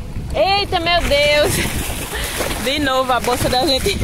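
Water splashes as a man runs through the shallows.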